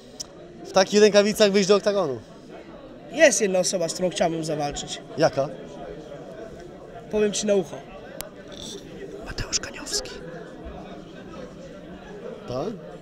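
A man speaks animatedly into a handheld microphone, close by.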